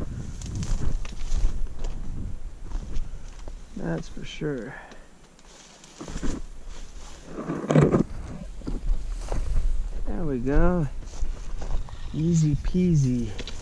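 Footsteps crunch over dry grass and loose rocks.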